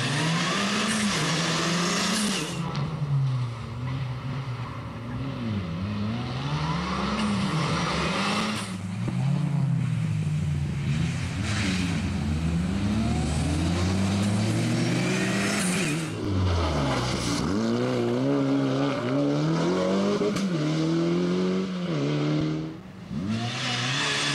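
A rally car engine roars loudly, revving up and down as the car speeds by.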